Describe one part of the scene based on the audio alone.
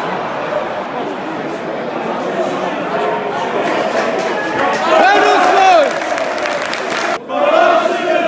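A large stadium crowd roars and murmurs in a wide open space.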